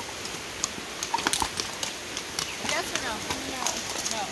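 Horse hooves clop on a gravel track.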